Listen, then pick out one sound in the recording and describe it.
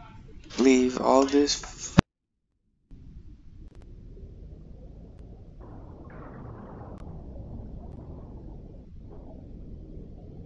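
Water splashes as a whale breaks the surface.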